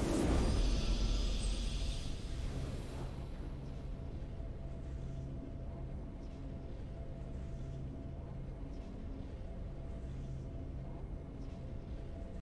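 A calm game victory tune plays.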